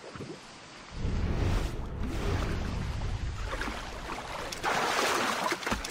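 Footsteps slosh through shallow water.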